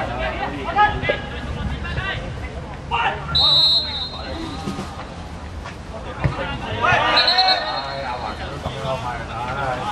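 Young men shout and call to each other on an open field.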